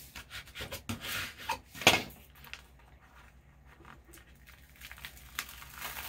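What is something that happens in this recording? Paper rustles and scrapes as hands rub and peel a sheet.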